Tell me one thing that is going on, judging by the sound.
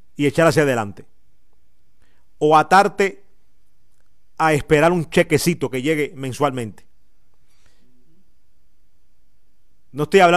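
A man speaks with animation close to a microphone, in short bursts with pauses.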